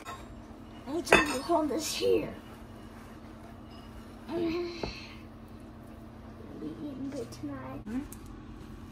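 A child talks with animation close by.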